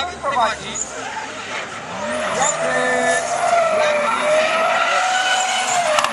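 Racing car engines roar and rev loudly outdoors.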